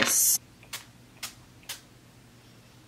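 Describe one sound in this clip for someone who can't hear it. A spray bottle hisses in several quick bursts.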